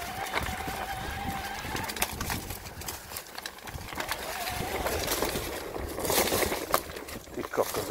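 A mountain bike rattles over bumps on a trail.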